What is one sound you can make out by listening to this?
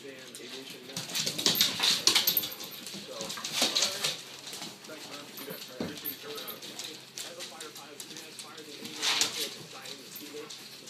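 Dogs' claws patter and scrabble on a wooden floor.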